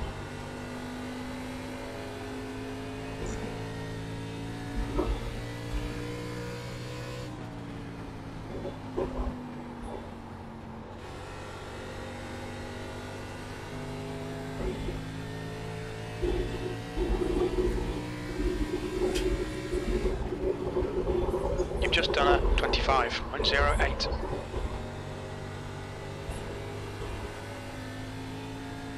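A race car engine drones steadily and shifts in pitch as it speeds up and slows down.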